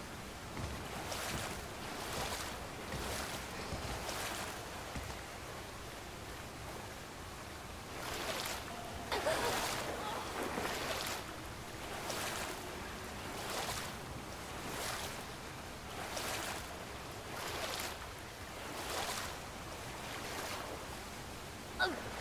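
Water bursts up in repeated rushing gushes.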